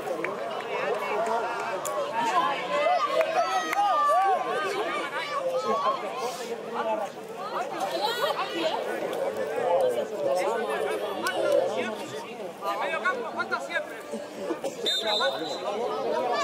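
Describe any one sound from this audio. Several men shout and call out across an open outdoor field.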